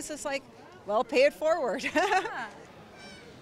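A young woman laughs, close by.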